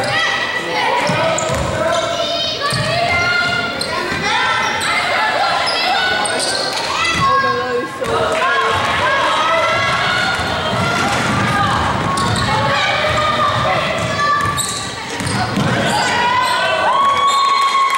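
Young women call out and shout across a large echoing gym.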